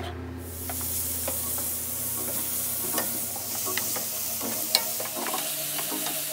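A wooden spatula scrapes and taps against a pan.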